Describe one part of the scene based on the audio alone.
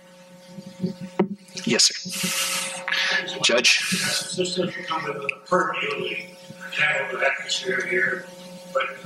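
A man speaks into a microphone in a cheerful tone.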